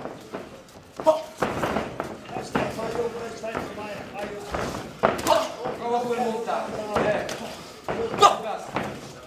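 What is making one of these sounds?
Boxing gloves thud sharply against a body.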